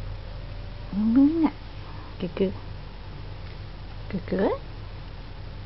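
A cat meows softly.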